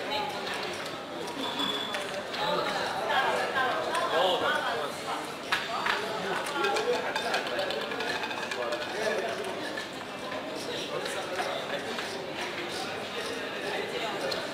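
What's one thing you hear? Plastic chips clack together as they are gathered and stacked.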